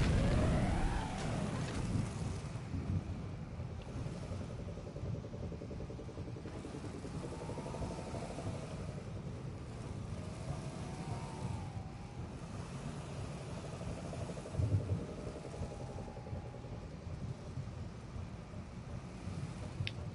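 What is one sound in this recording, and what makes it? A vehicle engine hums and roars steadily.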